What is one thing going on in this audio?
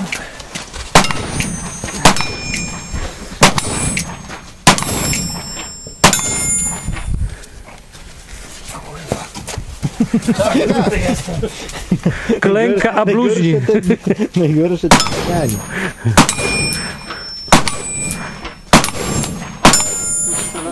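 Pistol shots ring out in quick bursts outdoors, each with a sharp echo.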